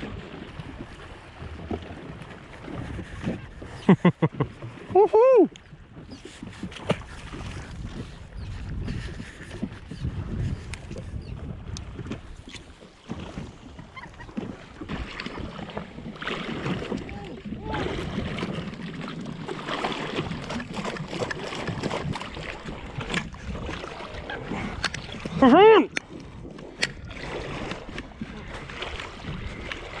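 Small waves slap against a hull.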